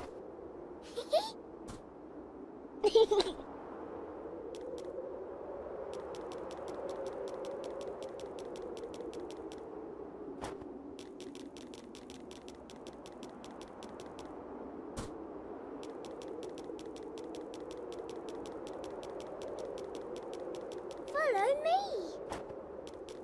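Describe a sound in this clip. A young child speaks cheerfully in short bursts.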